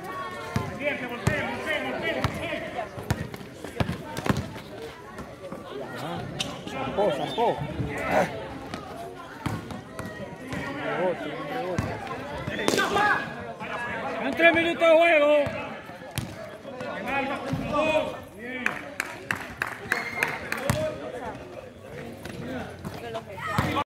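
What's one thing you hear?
Men shout and call out to each other across an outdoor court.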